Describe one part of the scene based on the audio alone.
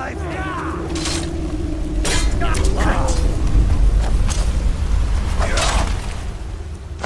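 Metal weapons clash and strike repeatedly.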